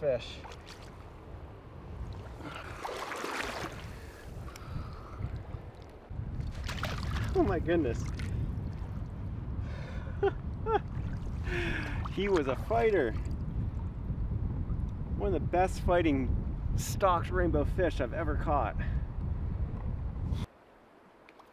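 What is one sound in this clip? River water rushes and splashes nearby.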